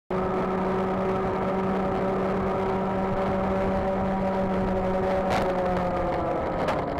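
A small kart engine whines steadily at high revs close by.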